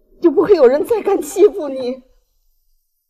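An elderly woman speaks tearfully up close.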